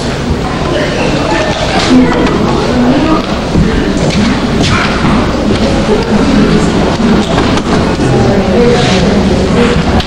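A woman speaks to an audience in an echoing hall.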